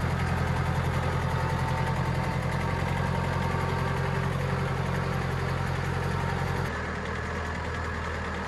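A small tractor engine chugs steadily close by.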